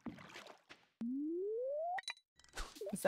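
A fishing line whirs out with a rising tone as a rod is cast.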